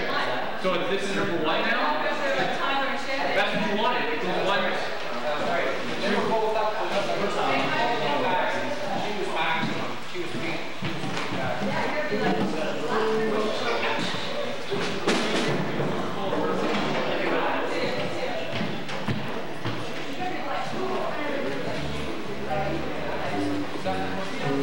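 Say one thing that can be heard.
Young people sing together into microphones.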